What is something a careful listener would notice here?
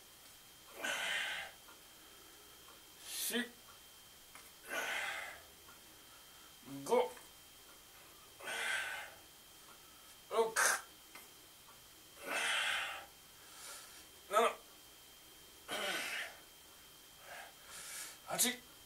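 A man exhales forcefully and rhythmically.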